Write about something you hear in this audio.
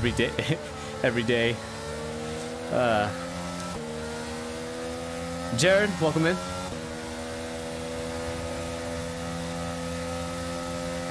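A racing car engine hums steadily and slowly rises in pitch.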